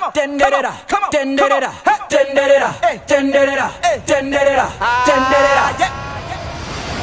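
A young man raps rhythmically over music.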